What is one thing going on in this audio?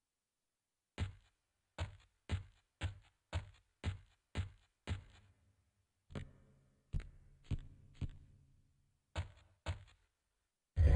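Footsteps thud on a hard floor at a steady running pace.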